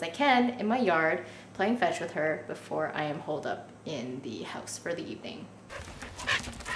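A young woman talks to the microphone up close, with animation.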